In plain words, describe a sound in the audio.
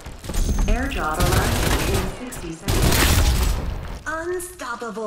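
Rapid gunfire bursts out loudly.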